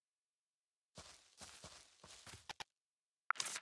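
Light footsteps tap across a wooden floor.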